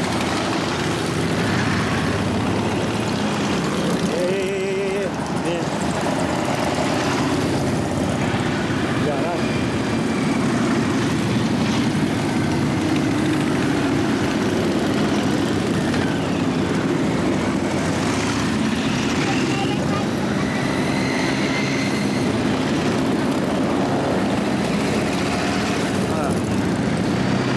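Motorcycle engines rev and growl as they pass.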